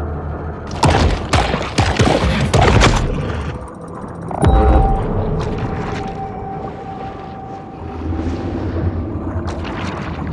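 Water rushes and bubbles underwater.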